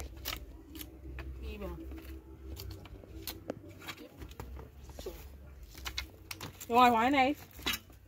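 A shovel scrapes and clinks against rubble.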